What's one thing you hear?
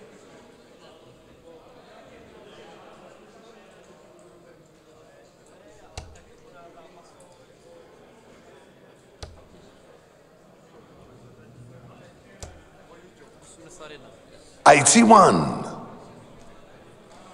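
A crowd murmurs softly in a large hall.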